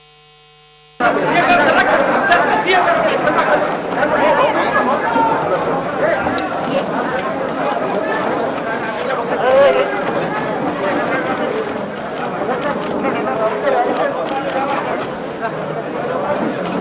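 A crowd of men chatters and cheers nearby.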